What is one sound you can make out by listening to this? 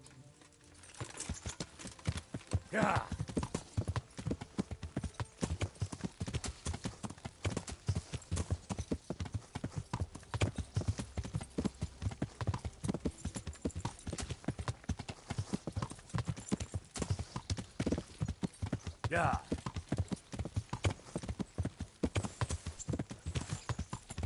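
Horse hooves pound rapidly on a dirt road.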